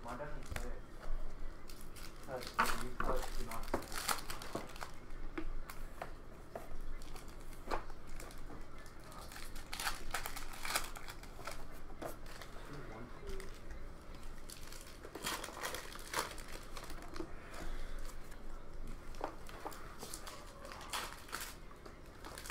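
Foil packs crinkle and tear as they are opened.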